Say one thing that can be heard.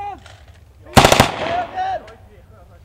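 A rifle fires a single loud shot.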